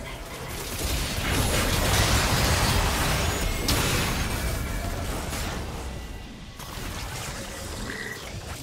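Magic spells burst and crackle in a game fight.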